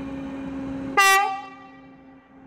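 A train horn gives a short, loud blast.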